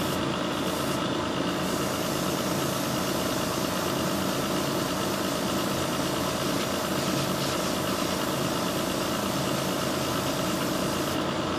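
An airbrush hisses steadily.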